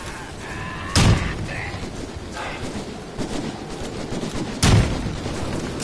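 A gun fires loud sharp shots.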